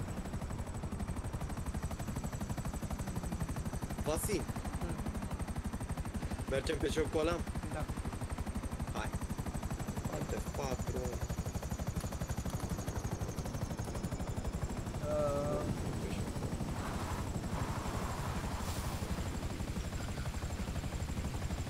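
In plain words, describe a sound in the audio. A helicopter's rotor thumps steadily and loudly.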